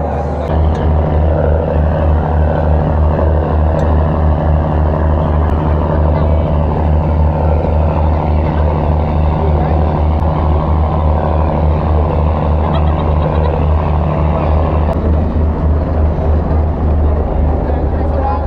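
A boat engine rumbles steadily throughout.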